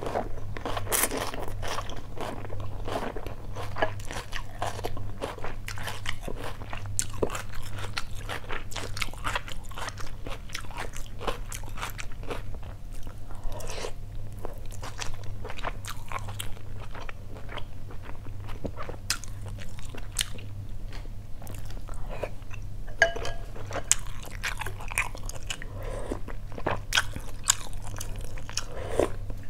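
A woman chews and smacks her lips loudly close up.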